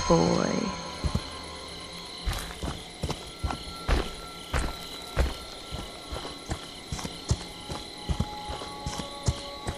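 Heavy footsteps crunch through dry leaves on the ground.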